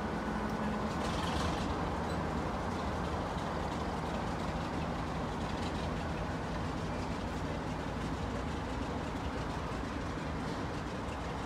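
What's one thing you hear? A diesel locomotive rumbles slowly away along the track.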